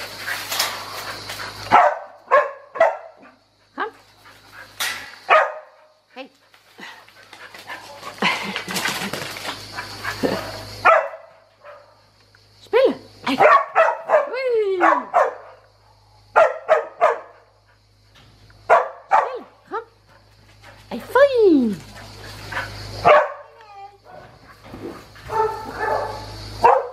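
A puppy barks and yelps excitedly close by.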